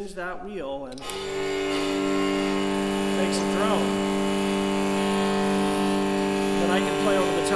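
A bow draws a low, steady, sustained note on a viol.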